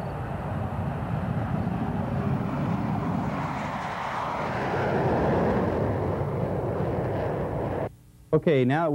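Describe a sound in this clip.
Jet engines roar loudly as fighter jets take off and fly past.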